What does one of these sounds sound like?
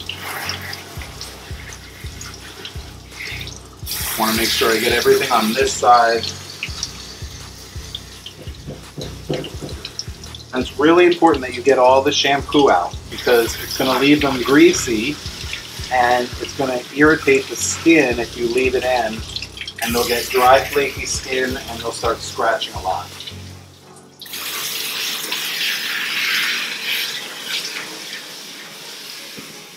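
Water sprays from a shower head and splashes.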